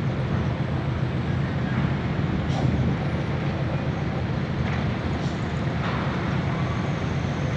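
A ship's engine rumbles low and steady nearby.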